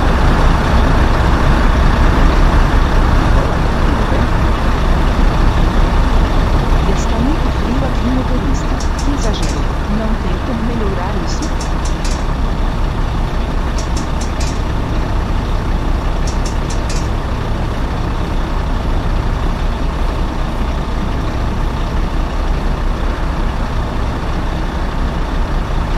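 A bus engine rumbles steadily as the bus pulls away.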